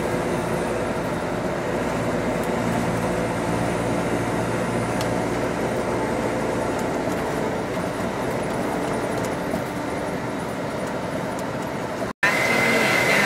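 A vehicle engine hums steadily from inside a moving bus.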